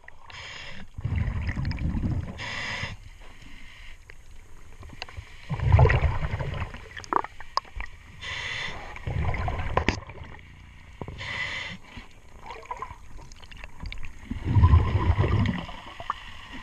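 Bubbles rumble and gurgle loudly as a diver breathes out underwater.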